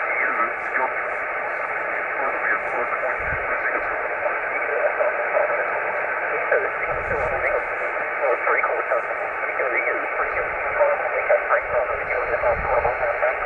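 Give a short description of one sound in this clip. A radio receiver hisses with steady static and faint warbling signals.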